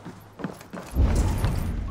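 A deep whooshing rumble swells up suddenly.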